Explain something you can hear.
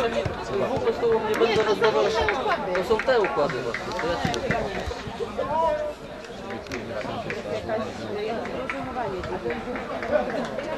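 Young men shout to each other from a distance outdoors.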